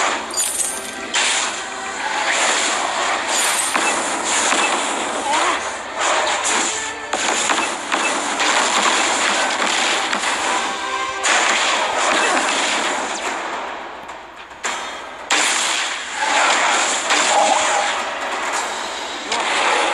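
Magic blasts and clashing weapon hits sound from a fast battle game.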